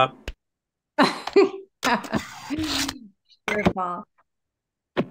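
A woman talks and laughs with animation through a microphone.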